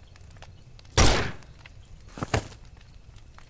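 A pistol fires two loud shots.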